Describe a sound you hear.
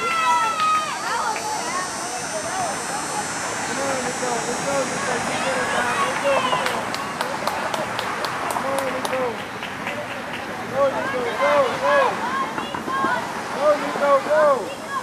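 Young children shout and call out outdoors.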